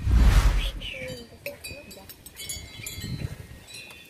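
Glass bottles clink as children toast.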